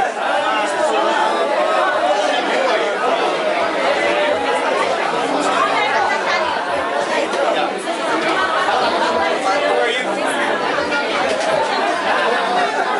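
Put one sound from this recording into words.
A crowd of men and women chatters loudly all around in an echoing room.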